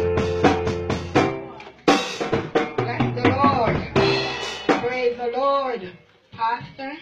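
A group of people sing loudly nearby.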